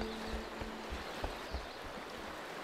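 Footsteps thud quickly as a man runs.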